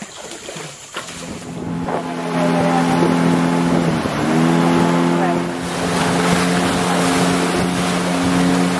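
A boat motor drones steadily.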